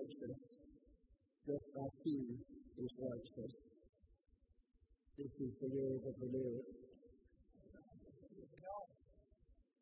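An elderly man reads aloud calmly through a microphone in a large echoing hall.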